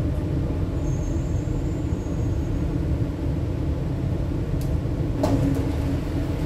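A train hums and rumbles steadily as it rolls along the rails.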